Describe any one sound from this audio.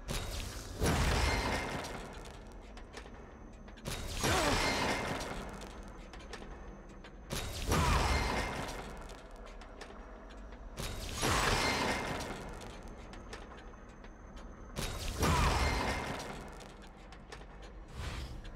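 A menu sound effect swells loudly again and again, then fades.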